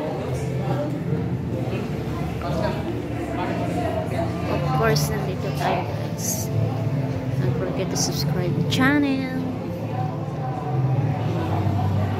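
Young children chat quietly nearby.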